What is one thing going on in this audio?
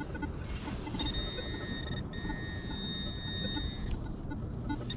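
A metal detector gives a steady high beeping tone.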